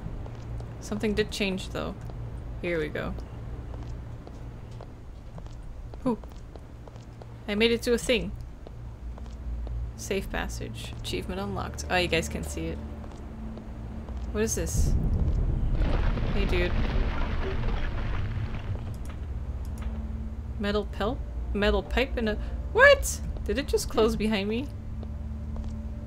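A young woman talks calmly and close to a microphone, in short bursts.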